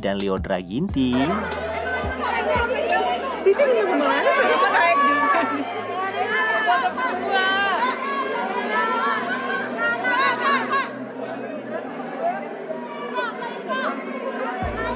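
A woman sings through loudspeakers over music.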